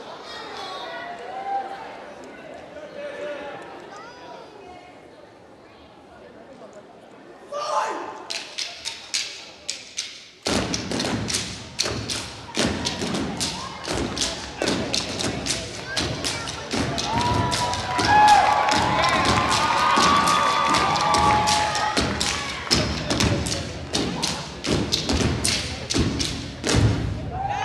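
An audience cheers and shouts in a large hall.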